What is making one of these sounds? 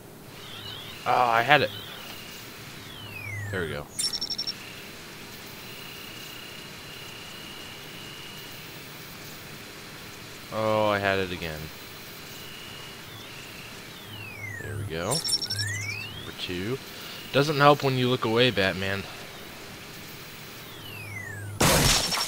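An electronic scanner warbles and sweeps up and down in pitch.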